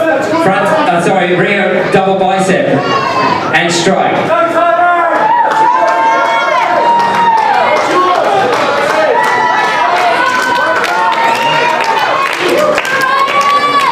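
A crowd claps.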